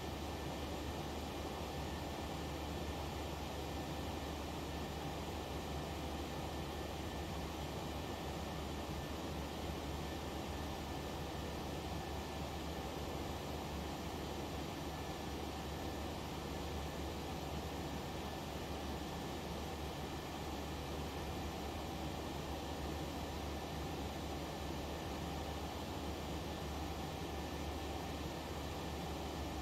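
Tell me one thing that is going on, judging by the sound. A jet engine drones steadily in a cockpit.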